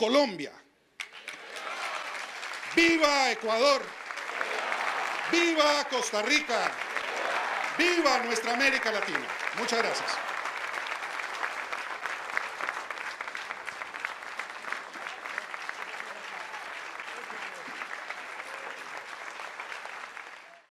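A large crowd applauds outdoors.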